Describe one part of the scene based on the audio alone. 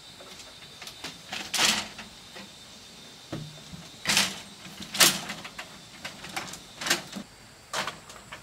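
Bamboo slats clatter and knock as they are laid down on a bed frame.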